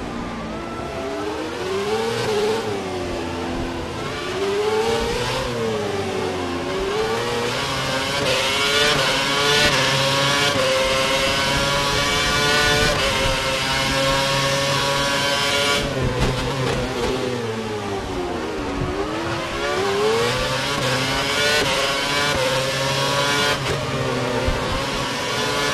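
A racing car engine screams, rising and falling in pitch as it shifts gears.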